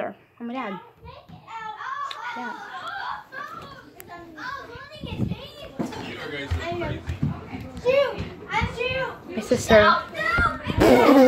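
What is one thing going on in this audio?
A young girl talks close by with animation.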